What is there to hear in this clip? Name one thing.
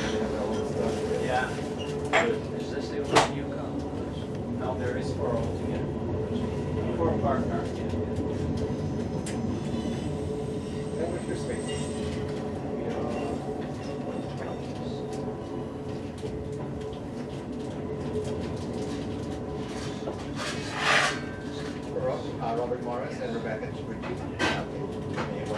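A freight train rumbles and clatters steadily past close by.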